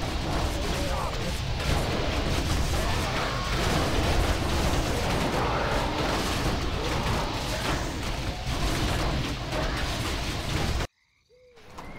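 Magic bolts rain down with dense crackling blasts.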